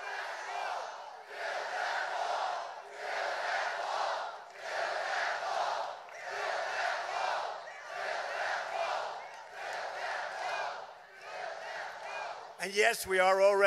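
A large crowd chants in rhythm in a big echoing hall.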